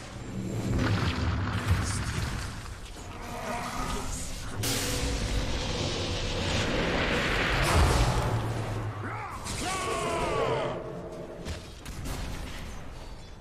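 Game spells crackle and blast during a fast fantasy battle.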